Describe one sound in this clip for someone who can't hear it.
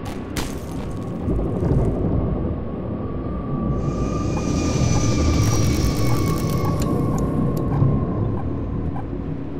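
A flying machine roars overhead with a deep rumble.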